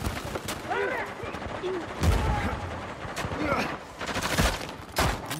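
Gunshots ring out in sharp, separate bursts.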